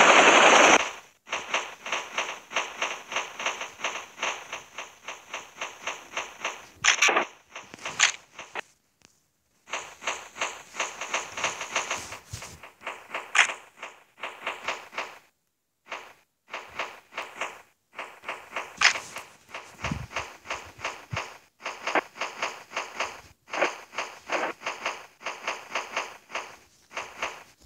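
Footsteps patter quickly and steadily through grass.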